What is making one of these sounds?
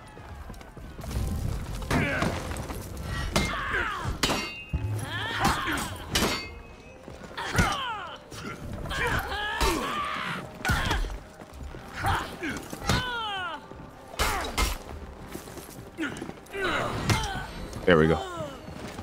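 Swords clash and clang in quick, sharp strikes.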